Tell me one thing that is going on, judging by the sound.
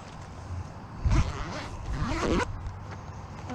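A young boy talks excitedly nearby.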